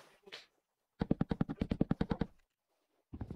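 An axe chops rapidly at wood with quick knocks.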